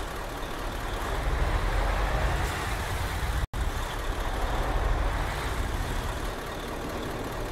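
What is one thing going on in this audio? A bus engine roars louder as the bus speeds up, then settles as it slows.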